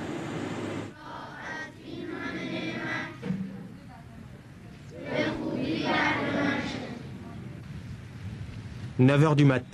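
A crowd of young people murmurs outdoors.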